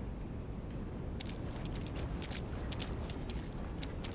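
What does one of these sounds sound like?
Footsteps scuff on wet pavement.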